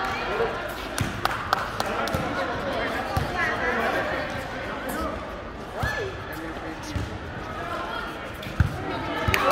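A volleyball is struck by hands in a large echoing hall.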